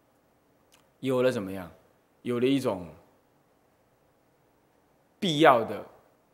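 A man speaks calmly and slowly into a microphone, in short phrases.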